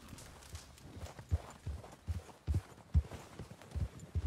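Horse hooves thud heavily on snow at a gallop.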